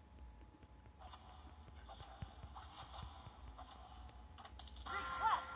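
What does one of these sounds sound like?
Video game fight effects whoosh and clash.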